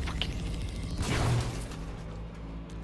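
An explosion booms with a deep rumble.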